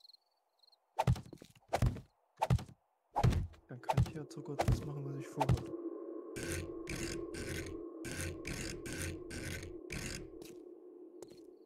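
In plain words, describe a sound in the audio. Heavy blocks thud into place one after another.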